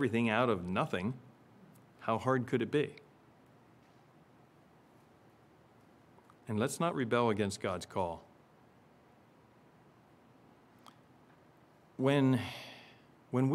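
A middle-aged man speaks with emphasis into a microphone, in short bursts with pauses.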